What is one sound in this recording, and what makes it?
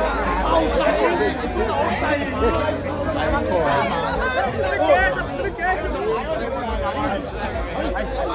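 A crowd of men and women talks and calls out nearby, outdoors.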